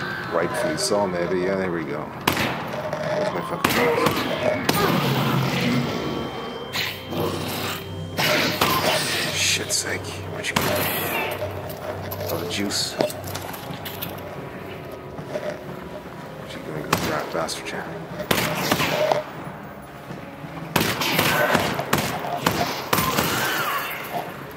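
Gunshots fire in quick, sharp bursts.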